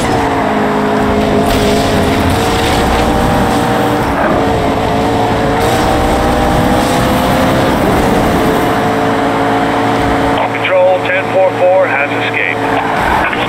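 A sports car engine roars at high speed, its pitch rising and dropping with gear changes.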